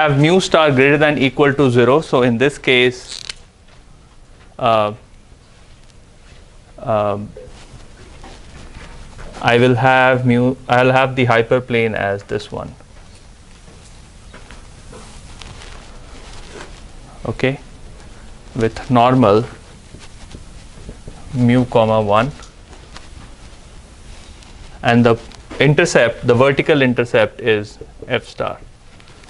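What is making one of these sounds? A young man lectures calmly, speaking in bursts with pauses.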